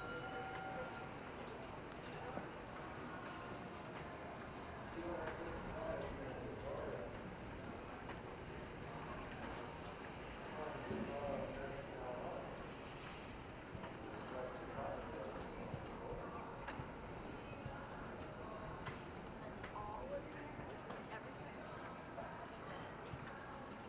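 A horse canters on grass, its hooves thudding.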